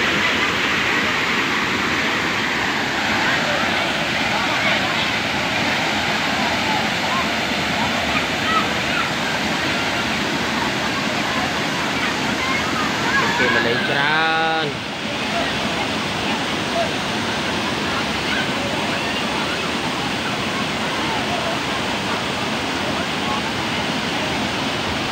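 A crowd of people chatter and call out in the distance.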